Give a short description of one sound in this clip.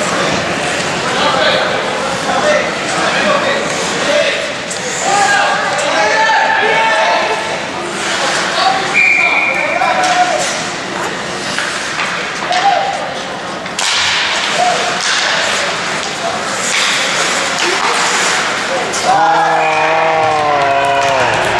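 Young men shout to each other across an echoing rink.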